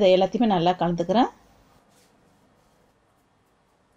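Hands rub and squeeze flour in a metal bowl.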